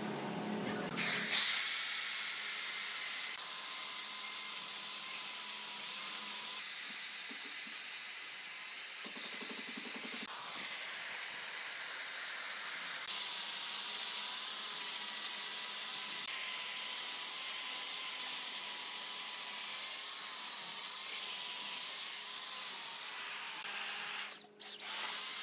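A chainsaw engine roars steadily as it cuts through wood.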